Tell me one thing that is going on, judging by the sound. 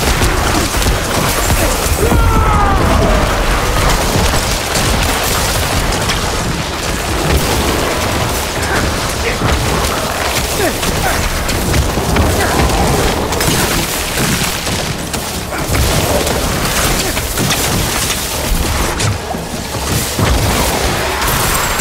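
Spells crackle and explode in a fast game battle.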